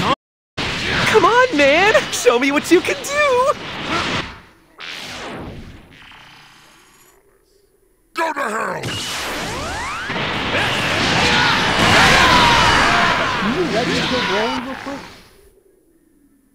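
Energy blasts roar and crackle in bursts.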